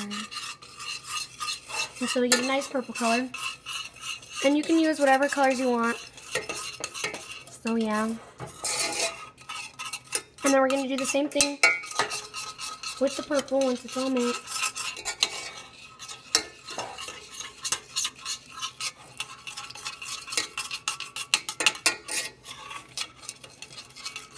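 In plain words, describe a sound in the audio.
A utensil scrapes and clinks against a metal pot.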